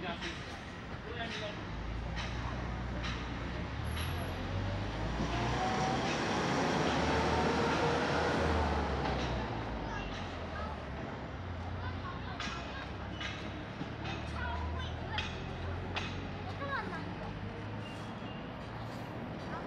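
Electric scooters whir past close by.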